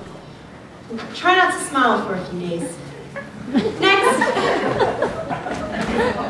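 A young woman speaks with animation, heard from a distance in a hall.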